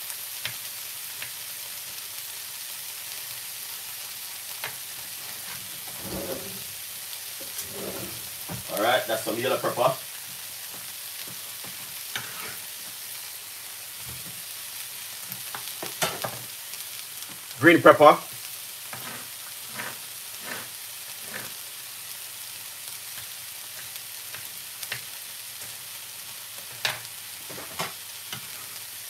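Food sizzles quietly in a frying pan.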